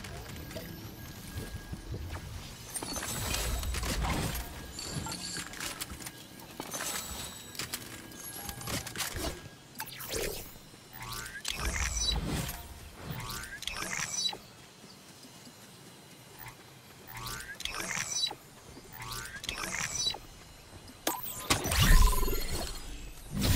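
Quick footsteps patter over the ground.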